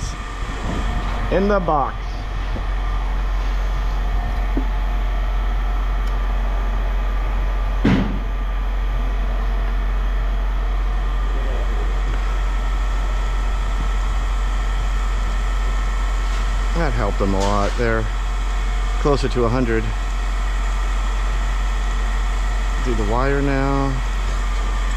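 An electrical machine hums steadily.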